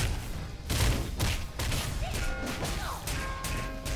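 Fiery blasts crackle and burst.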